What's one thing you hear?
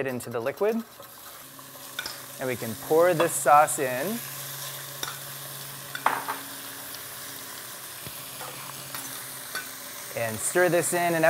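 Liquid pours into a pan and sizzles.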